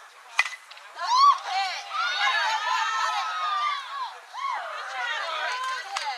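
Young women shout and cheer loudly outdoors.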